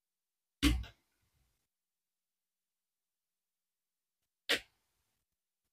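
A screwdriver knocks against a metal casing.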